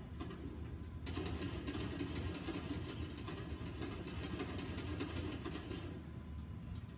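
Gunshots fire in rapid bursts from a video game, heard through a television speaker.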